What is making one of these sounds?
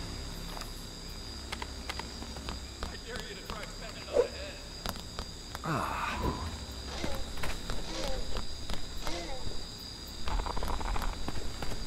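Electric sparks crackle and fizz.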